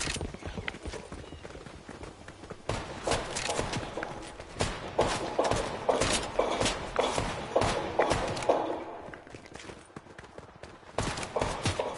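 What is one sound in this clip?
Footsteps run across grass and stone.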